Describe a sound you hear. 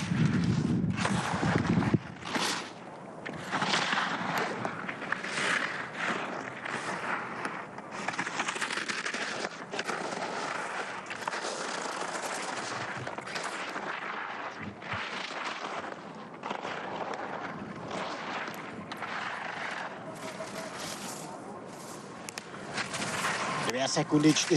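Skis scrape and hiss over hard snow.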